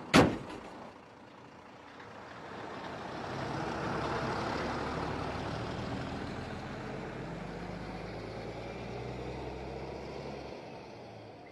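A small truck's engine drones as it drives away and fades into the distance.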